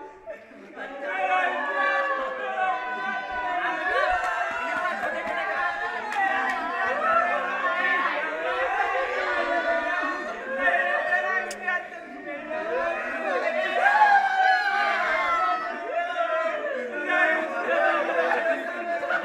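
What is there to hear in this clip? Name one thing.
Several young men talk and laugh loudly together close by.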